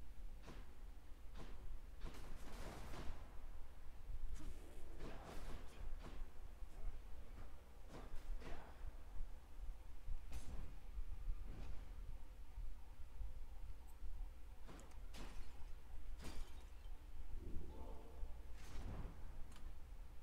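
Sword slashes whoosh and strike again and again.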